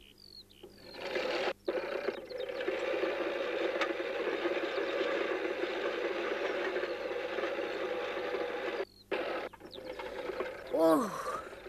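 A push lawnmower whirs and rattles across grass.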